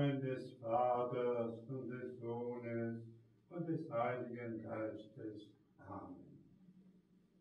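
An elderly man chants in a slow, sung voice.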